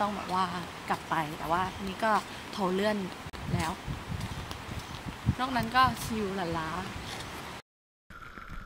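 A young woman talks casually up close.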